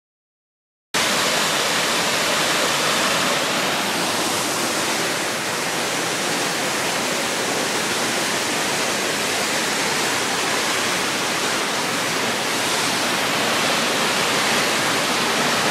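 A waterfall roars as it tumbles down rocky steps.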